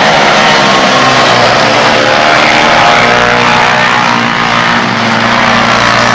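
Several motorcycle engines roar and whine as they race past.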